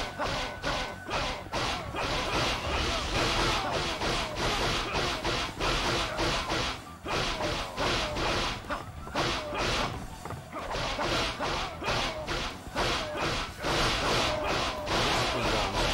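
Swords clash and slash again and again in quick succession.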